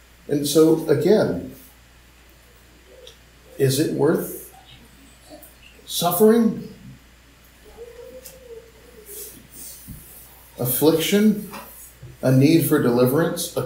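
A man reads aloud in short phrases, heard through an online call.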